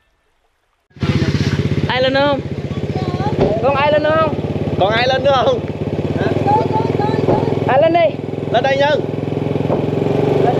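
A motorbike engine hums steadily close by.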